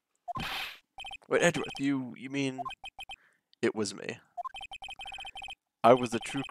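Rapid electronic blips tick as game dialogue is typed out.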